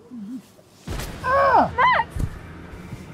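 A man cries out in distress close by.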